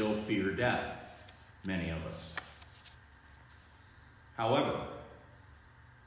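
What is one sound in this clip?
A man speaks slowly and calmly in a room with a slight echo.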